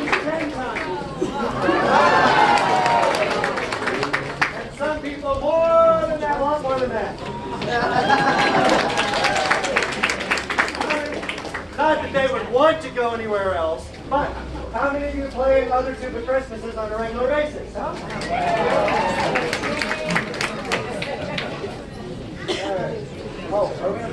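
A crowd sings along loudly.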